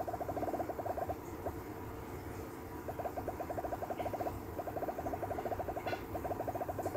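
Game balls bounce off blocks with rapid, high bleeping tones.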